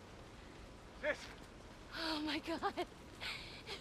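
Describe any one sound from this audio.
A young woman exclaims in surprise.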